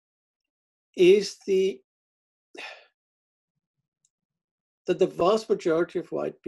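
An older man speaks calmly over an online call, pausing between phrases.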